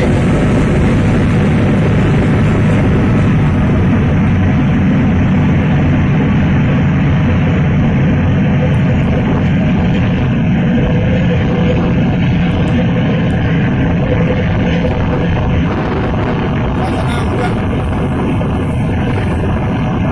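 A boat's engine rumbles loudly and steadily.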